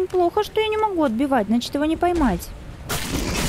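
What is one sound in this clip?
A young woman speaks expressively into a close microphone.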